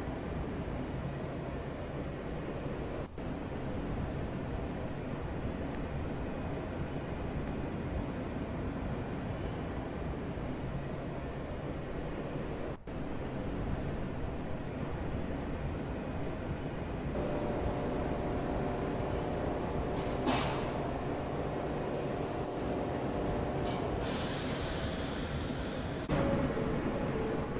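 A subway train hums steadily while it idles.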